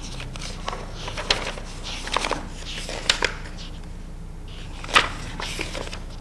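Paper rustles as a man handles it.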